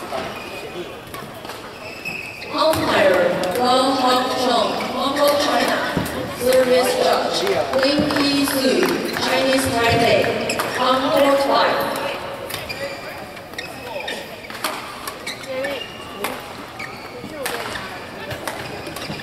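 Badminton rackets strike a shuttlecock back and forth.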